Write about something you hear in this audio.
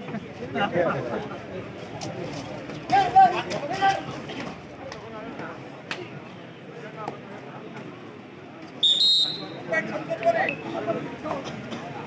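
A crowd cheers and shouts in bursts.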